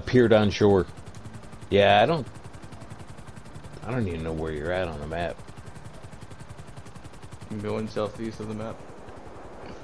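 A helicopter's rotor chops steadily overhead.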